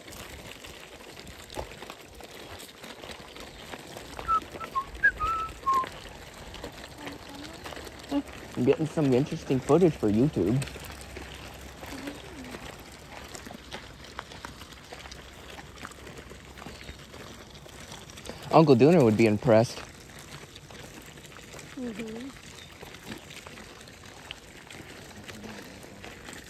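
Stroller wheels roll and crunch over gravel.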